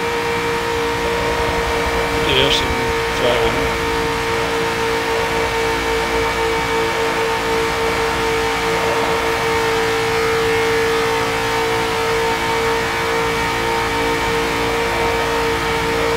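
A racing car engine drones loudly and steadily at high speed.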